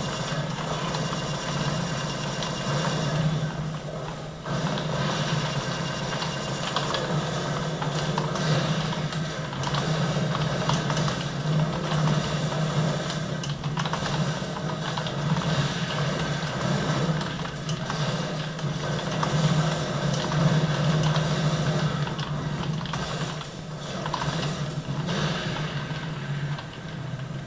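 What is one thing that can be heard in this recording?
Game sounds of gunfire and explosions play from loudspeakers.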